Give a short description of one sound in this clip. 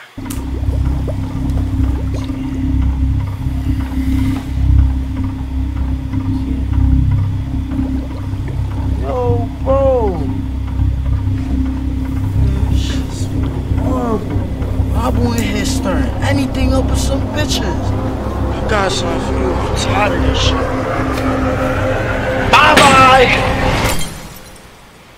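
Rap music with a deep, thumping bass beat plays loudly.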